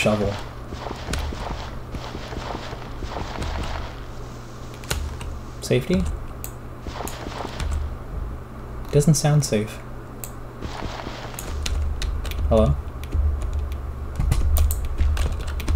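Dirt crunches in short bursts as it is dug away.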